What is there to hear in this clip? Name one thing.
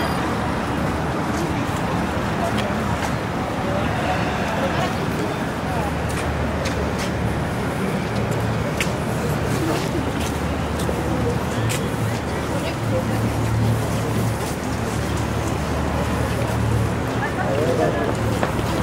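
A crowd of passers-by chatters in the open air.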